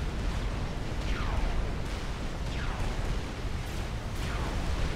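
Laser weapons fire with falling, zapping whines.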